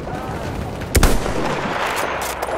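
A rifle fires a single loud, close shot that echoes.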